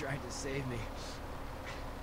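A young man speaks weakly and hoarsely, close by.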